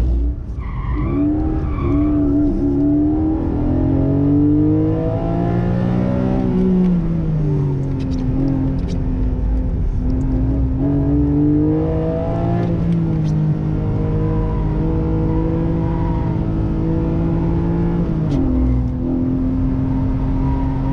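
A sports car engine revs loudly, rising and falling in pitch.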